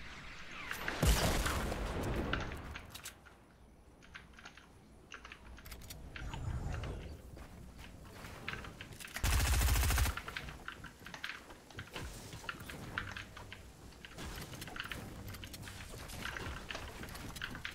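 Wooden walls and ramps thud into place as they are built.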